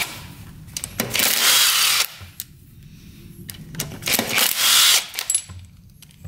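A cordless drill whirs as it backs a bolt out of an engine case.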